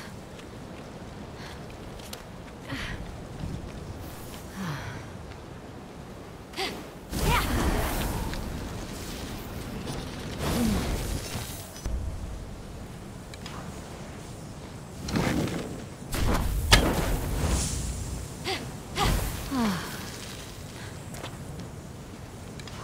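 Wind blows steadily.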